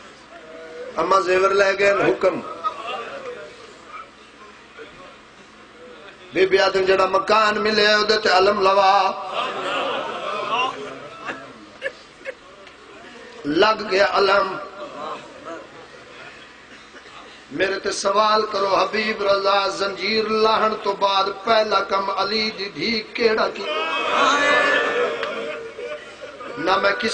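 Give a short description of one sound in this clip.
A man speaks passionately through a microphone over loudspeakers, in bursts and with long pauses.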